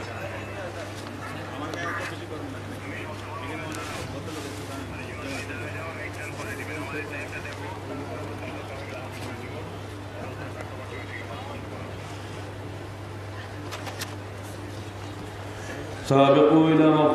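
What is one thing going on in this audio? An elderly man preaches with fervour through a microphone and loudspeakers, outdoors.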